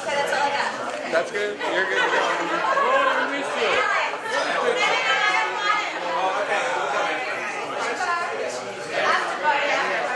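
A crowd of young women chatter and laugh loudly nearby.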